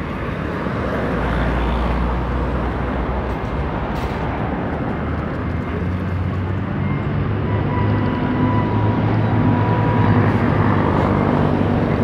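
Traffic rumbles steadily along a nearby road.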